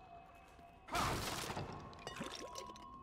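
A sudden loud blow lands during a brief struggle.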